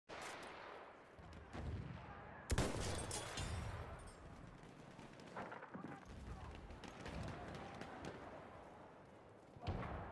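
Explosions rumble in the distance.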